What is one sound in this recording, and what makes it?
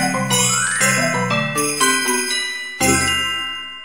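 A small ensemble of synthesized instruments plays a lively tune.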